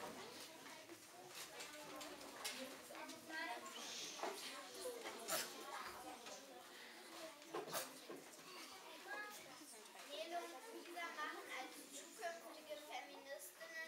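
A young girl reads out aloud, close by in an echoing hall.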